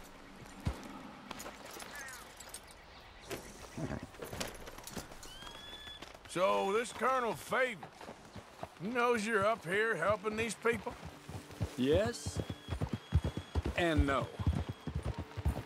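Horses' hooves clop slowly on stony ground.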